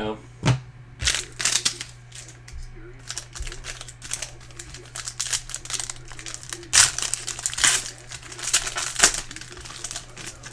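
A foil wrapper crinkles and tears as hands open it.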